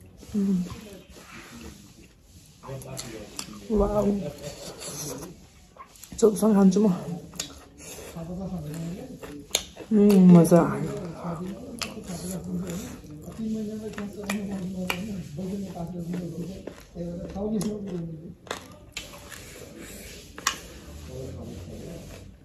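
Fingers squish and scrape through rice on a plate.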